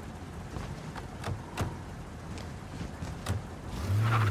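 A car door opens and slams shut.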